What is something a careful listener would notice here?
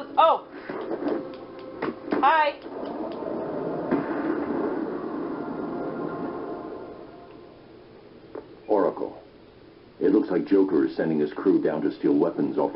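A video game's sound effects and music play from a television loudspeaker.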